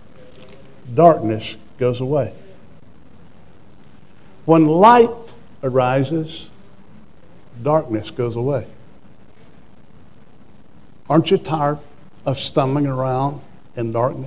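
A middle-aged man preaches with animation through a microphone, in bursts with pauses between.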